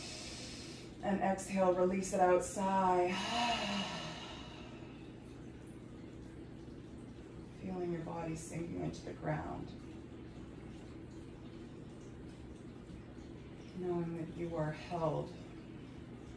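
A woman speaks calmly and softly in short phrases with long pauses.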